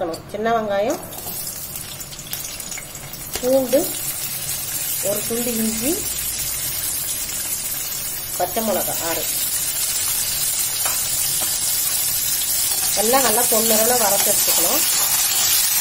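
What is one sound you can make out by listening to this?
Shallots and garlic sizzle in hot oil in a wok.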